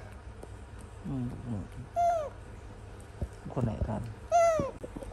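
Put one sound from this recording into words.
A baby macaque gives high squeaking calls up close.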